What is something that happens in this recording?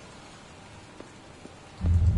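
Footsteps tap on hard pavement.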